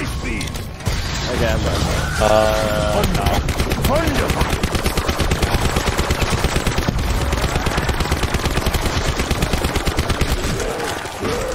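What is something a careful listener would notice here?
A gun fires in rapid, loud bursts.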